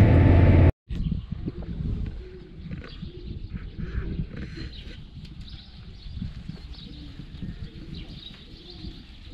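A flock of sheep bleats in a large shed.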